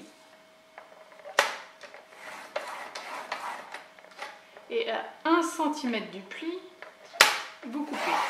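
A paper trimmer blade slides along and cuts through card.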